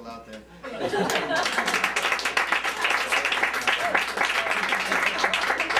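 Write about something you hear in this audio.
People applaud with steady clapping.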